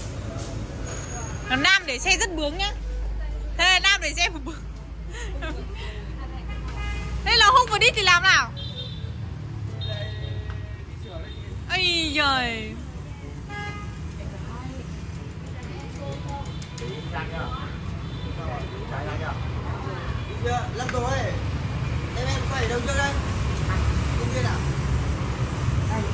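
Traffic hums steadily on a nearby street.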